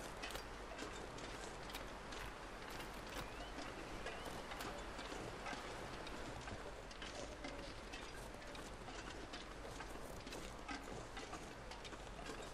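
Wind blows steadily in a snowstorm.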